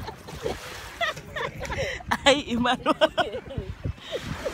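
A young woman talks and laughs close by, with animation.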